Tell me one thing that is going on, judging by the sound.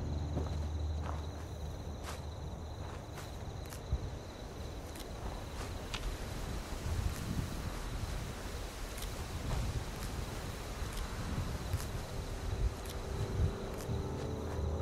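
Footsteps crunch over dry grass and leaves.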